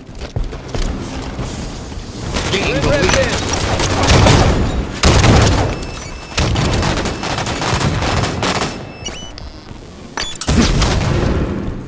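Gunfire from a video game blasts repeatedly.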